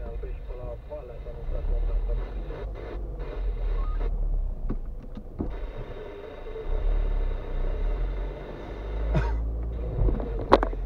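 Tyres roll on a rough road.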